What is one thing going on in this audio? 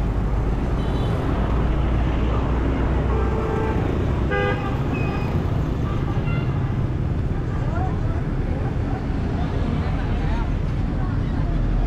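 A busy crowd chatters outdoors.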